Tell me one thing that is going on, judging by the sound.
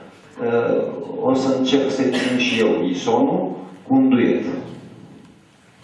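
A man speaks calmly through a microphone in a room.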